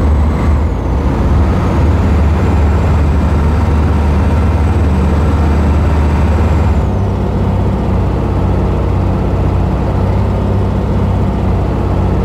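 Tyres hum on a road.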